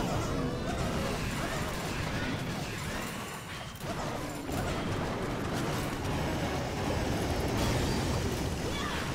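Game troops clash and explode in a battle with dense crackling effects.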